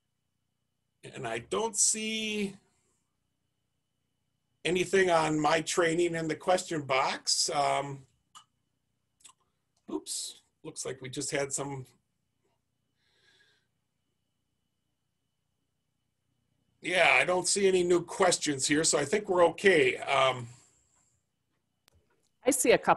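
A middle-aged man speaks calmly into a headset microphone, in short bursts with pauses.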